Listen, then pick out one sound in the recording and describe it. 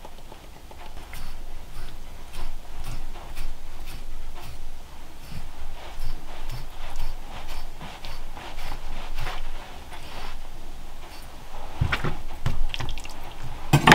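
A knife scores the skin of meat on a board with soft scraping strokes.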